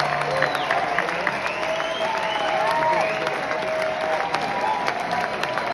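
Drums are struck in a steady beat.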